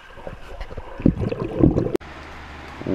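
Air bubbles gurgle underwater.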